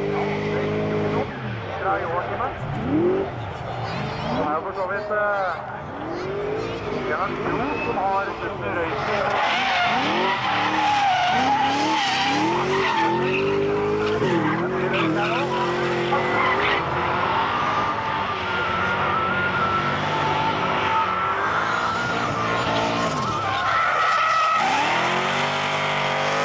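Tyres screech and squeal on asphalt.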